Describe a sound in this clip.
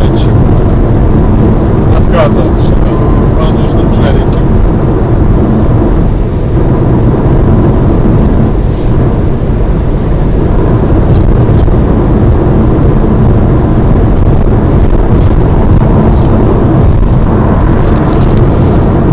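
Tyres roar steadily on a paved road.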